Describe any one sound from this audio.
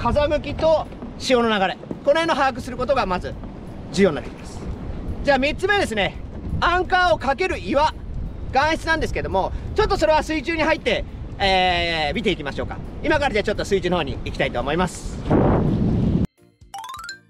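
A man talks to the listener with animation, close by.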